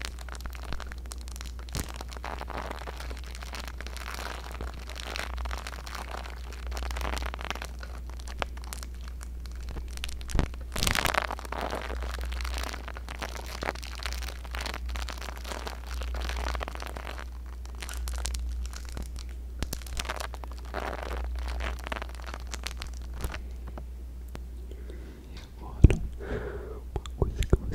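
A young man whispers softly and closely into a microphone.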